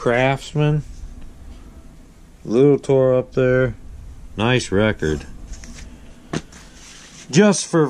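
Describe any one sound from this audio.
Cardboard record sleeves rustle and slide as they are handled.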